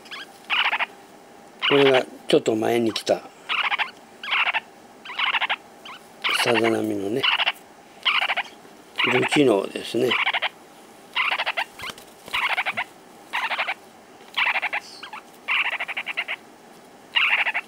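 Baby birds chirp in repeated raspy bursts close by.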